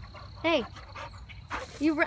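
A dog pants close by.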